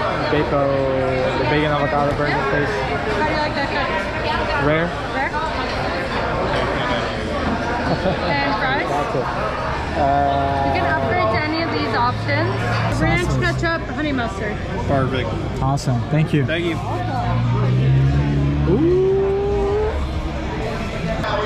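Many people chatter in the background of a busy room.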